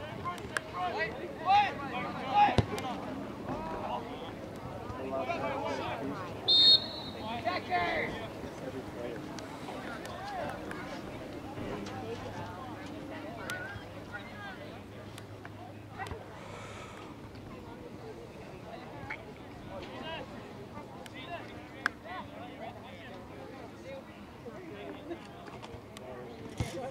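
Voices of spectators call and cheer outdoors from the sidelines.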